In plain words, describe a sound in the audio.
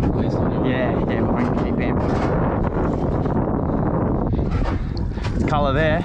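Water laps and splashes gently.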